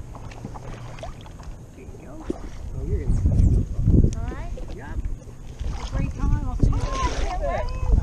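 Water laps and splashes against a paddleboard.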